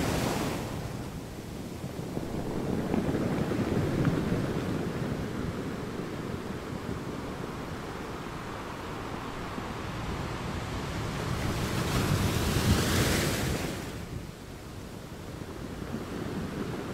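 Waves crash and roll onto rocks with a steady rumbling roar.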